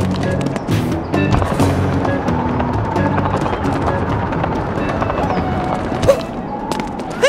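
Upbeat game music plays with a bouncy beat.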